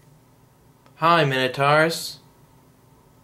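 A young man speaks briefly and loudly, close to the microphone.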